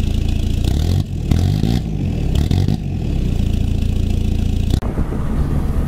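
A truck engine revs up sharply.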